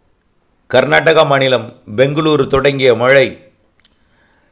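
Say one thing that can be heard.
A man speaks calmly and clearly into a microphone, close up.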